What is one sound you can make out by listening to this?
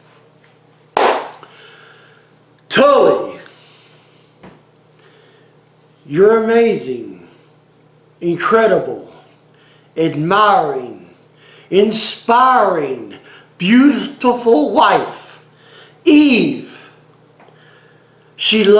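A middle-aged man speaks calmly and close up, in short phrases with pauses.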